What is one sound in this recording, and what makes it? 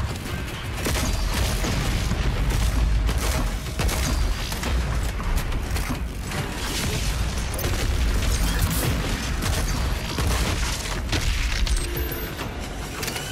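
A shotgun fires in rapid bursts.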